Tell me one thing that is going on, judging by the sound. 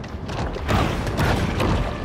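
A shark bites its prey underwater with a splashing crunch.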